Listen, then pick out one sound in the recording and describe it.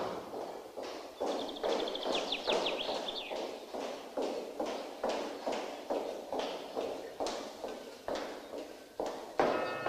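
Footsteps tap on a hard floor in an echoing hallway.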